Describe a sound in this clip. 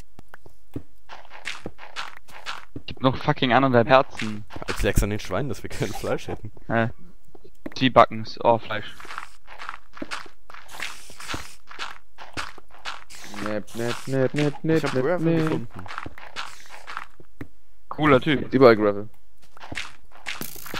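A digging tool crunches repeatedly into dirt and stone.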